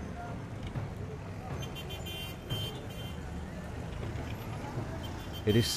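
Traffic and motorbikes rumble along a busy street outdoors.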